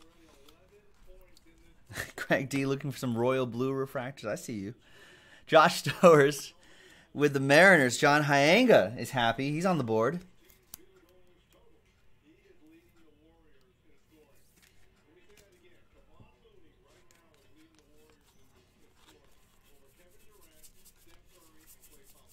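Trading cards shuffle and flick in hands.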